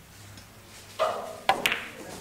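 A cue strikes a pool ball with a sharp click.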